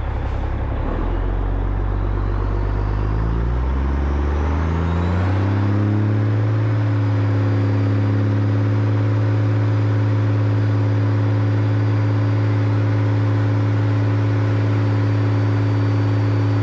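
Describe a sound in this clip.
A motorcycle engine revs up and pulls away, rising in pitch before settling into a steady drone.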